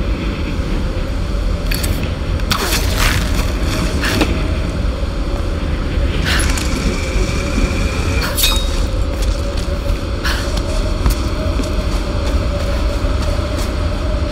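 Waves crash and rumble steadily below.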